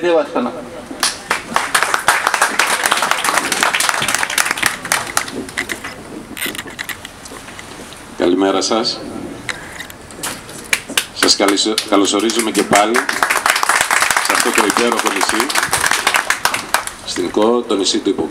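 A crowd applauds outdoors.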